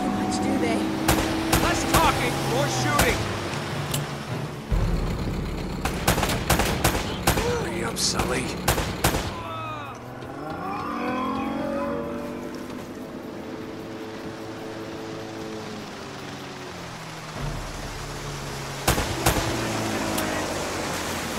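Pistol shots crack in quick bursts.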